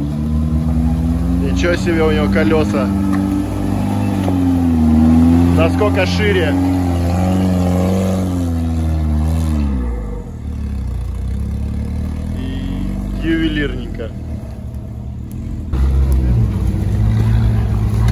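An off-road engine revs and growls as it climbs through mud.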